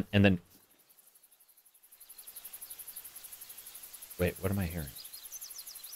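A young man speaks briefly through a microphone.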